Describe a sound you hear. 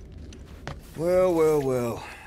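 A man says a few words close by.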